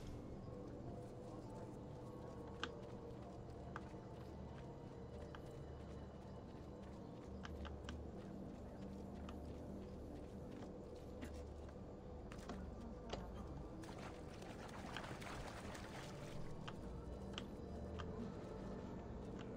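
Footsteps patter quickly on grass and stone.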